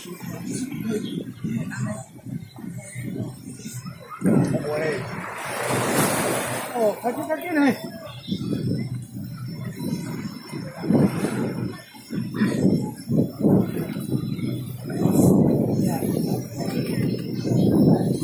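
Small waves wash over the wet sand.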